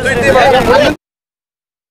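A crowd cheers loudly.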